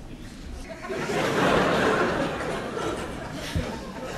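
An audience laughs and cheers loudly in a large hall.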